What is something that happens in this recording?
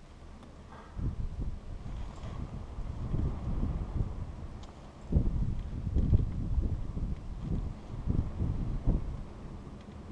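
Strong wind gusts buffet and rumble outdoors.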